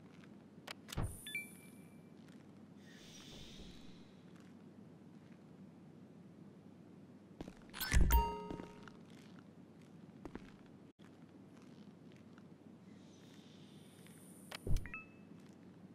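A heavy metal safe door clanks open and shut.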